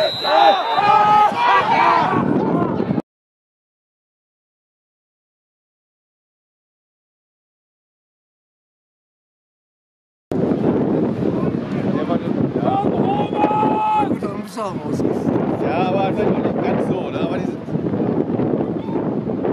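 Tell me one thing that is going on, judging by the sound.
A crowd of spectators chants outdoors.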